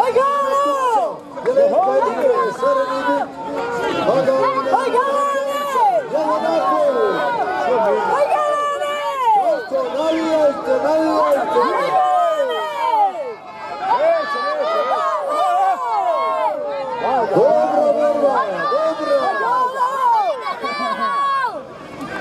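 A crowd of men shouts and cheers outdoors.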